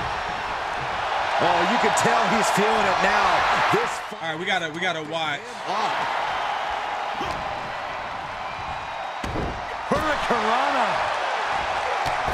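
A large crowd roars and cheers in an arena.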